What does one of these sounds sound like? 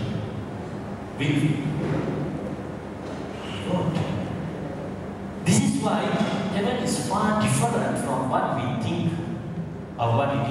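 A man preaches with animation into a microphone, heard through loudspeakers in an echoing hall.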